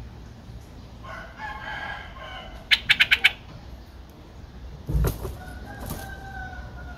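Nestlings cheep shrilly, begging for food.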